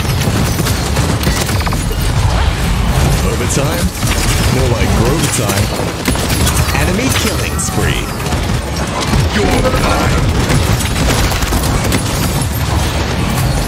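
Explosions and blasts boom loudly.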